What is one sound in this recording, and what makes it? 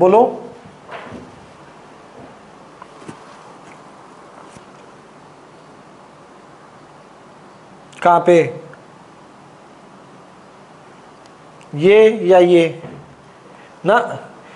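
A man speaks in short bursts through a clip-on microphone, with long pauses between.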